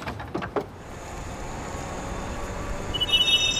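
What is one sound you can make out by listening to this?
A scooter motor hums as it rides off.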